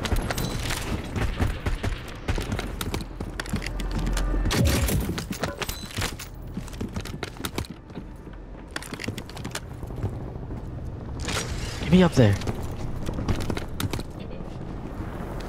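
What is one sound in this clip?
A young man talks with animation through a close microphone.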